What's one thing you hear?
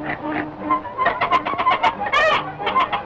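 A goose honks out a squeaky, rhythmic tune.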